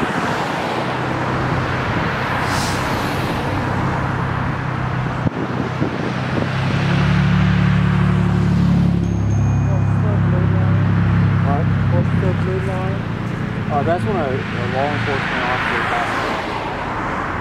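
Cars drive past on a road, tyres hissing.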